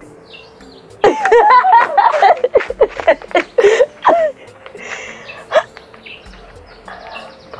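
A young woman laughs loudly and excitedly close by.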